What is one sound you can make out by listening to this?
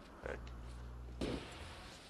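Flames crackle and burn.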